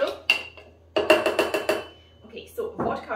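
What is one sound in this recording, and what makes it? A bar spoon rattles ice in a metal cup.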